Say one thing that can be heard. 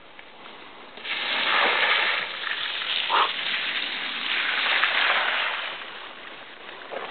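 A bicycle splashes loudly through a muddy puddle.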